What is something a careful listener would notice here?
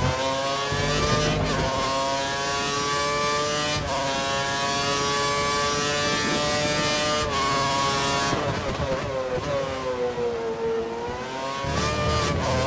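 A racing car engine screams at high revs, climbing in pitch and dropping briefly at each gear change.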